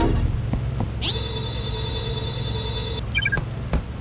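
Electric sparks crackle and buzz loudly.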